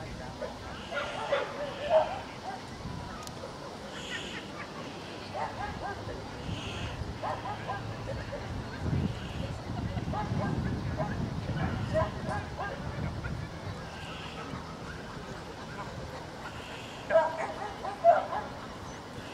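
A crowd of adults chats quietly in the background outdoors.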